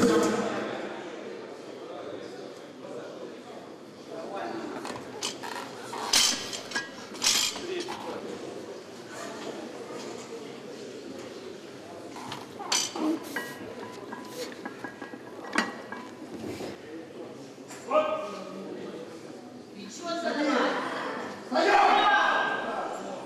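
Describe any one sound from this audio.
A crowd of men shouts encouragement in an echoing hall.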